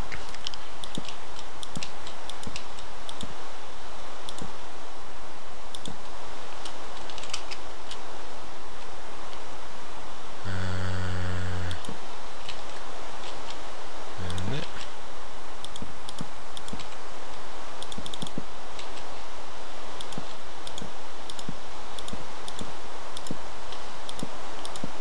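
Rain falls steadily with a soft hiss.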